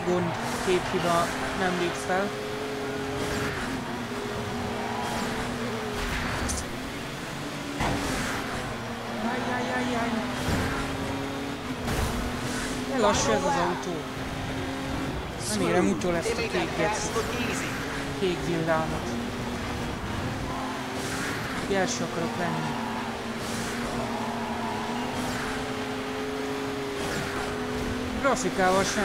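A racing engine roars steadily, its pitch rising and falling with gear changes.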